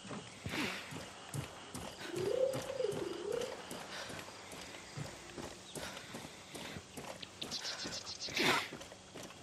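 Footsteps tread on dry ground.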